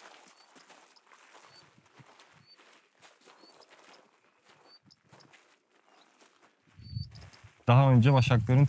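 Footsteps crunch softly on dry ground and twigs.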